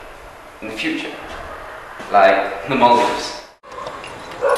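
Another young man answers nearby.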